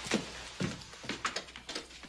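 A man rattles a door handle.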